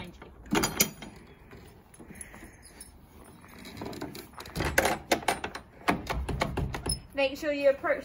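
A wooden stable door bangs and rattles.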